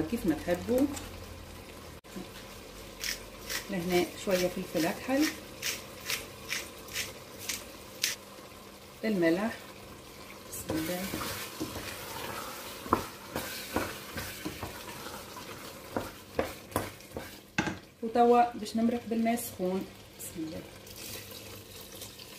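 A wooden spoon stirs and scrapes inside a metal pot.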